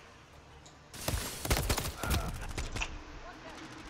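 Rapid gunshots ring out from a rifle.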